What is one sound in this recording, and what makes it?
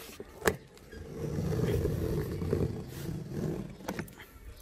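Cardboard rustles and crackles under a hand.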